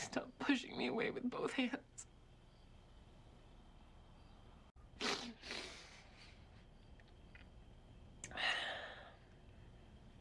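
A young woman sobs.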